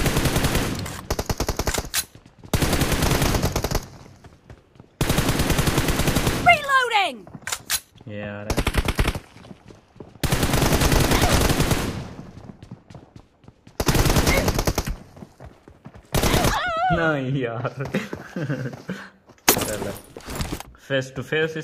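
Automatic rifle fire crackles in rapid bursts.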